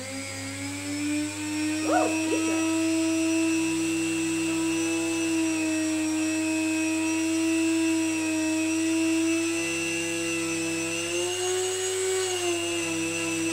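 A rotary tool whines steadily at high speed.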